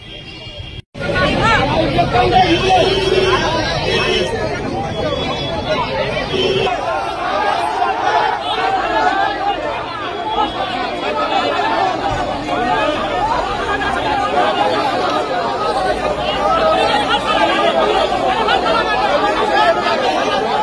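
A crowd of men talks and shouts excitedly outdoors, close by.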